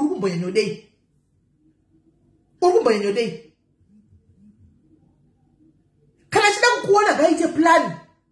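A woman talks with animation close to a phone microphone, in short bursts with pauses.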